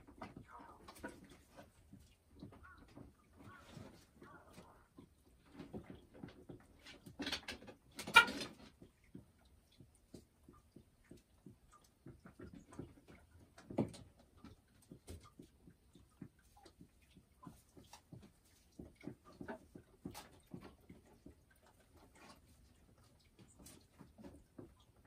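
A hen clucks and murmurs softly close by.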